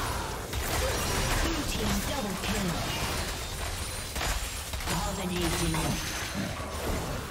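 Spells and weapon strikes crackle and burst in a video game battle.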